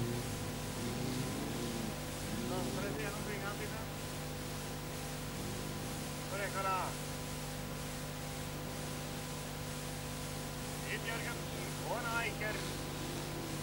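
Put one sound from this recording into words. Car engines roar in the distance.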